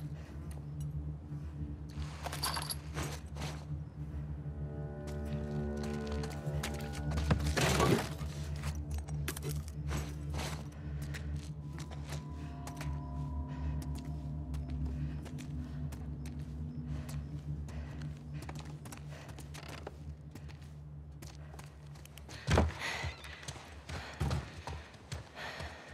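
Footsteps creak across a wooden floor.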